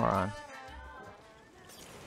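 A knife swishes through the air.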